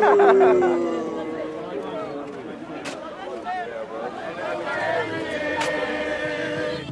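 A crowd of men talk over one another outdoors.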